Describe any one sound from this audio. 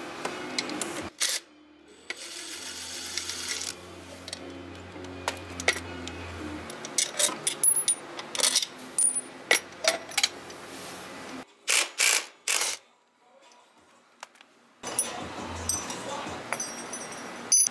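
Metal tools clink and scrape against engine parts.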